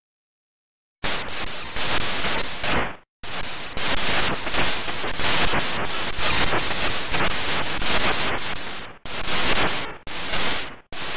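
Loud electronic game music and sound effects play.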